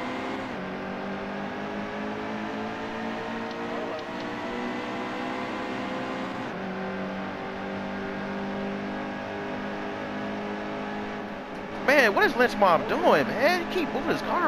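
Racing car engines roar steadily at high speed.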